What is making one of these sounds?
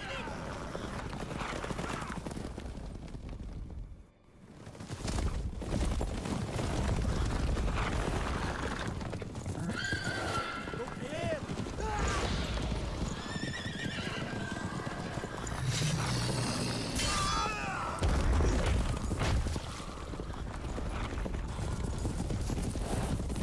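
Horses gallop in a group.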